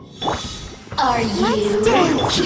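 Magical blasts crackle and whoosh in a burst of combat.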